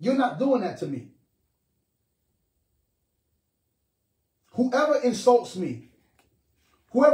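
A man speaks expressively and close to the microphone, in short phrases with pauses.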